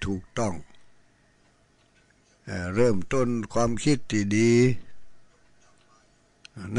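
An elderly man chants slowly into a microphone, in a melodic voice.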